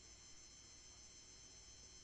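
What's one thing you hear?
A short electronic chime sounds from a fishing game.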